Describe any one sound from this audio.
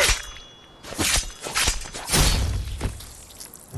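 A blade thuds wetly into a body.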